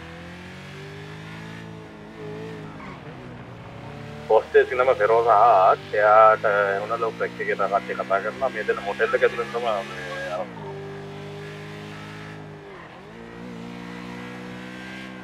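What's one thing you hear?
A motorcycle engine hums steadily, its pitch rising and dropping as it shifts gears.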